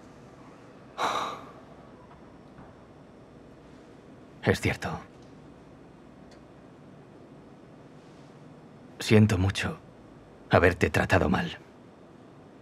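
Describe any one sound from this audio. Another young man speaks in short, low bursts.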